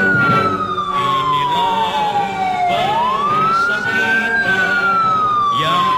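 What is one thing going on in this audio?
A siren wails, rising and falling slowly.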